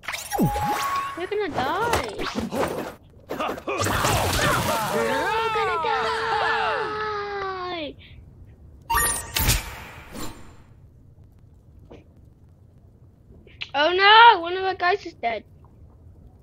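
Game battle effects whoosh, zap and clash.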